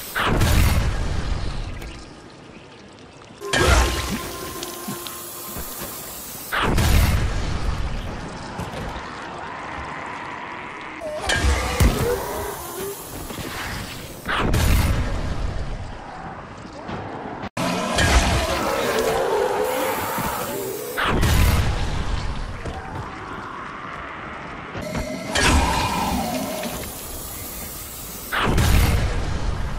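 Heavy blows thud and splatter as a weapon strikes attackers.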